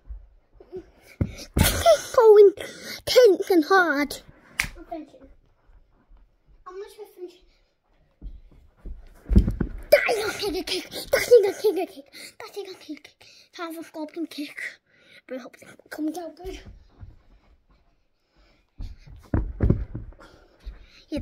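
Clothes rustle and thump against the microphone.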